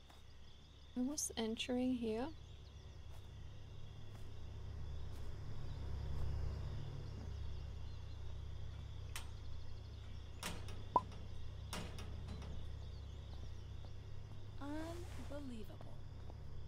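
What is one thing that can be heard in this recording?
A young woman speaks casually into a close microphone.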